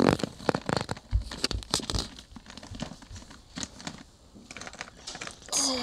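A hand rummages through a basket of plastic toys, which clatter and rattle.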